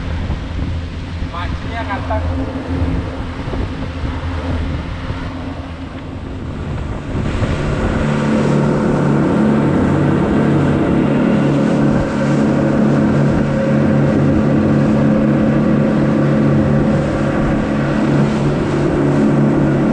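Water churns and rushes in the boat's wake.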